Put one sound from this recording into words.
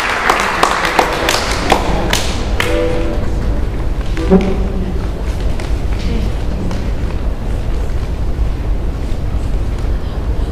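An accordion plays with sharp, punchy chords.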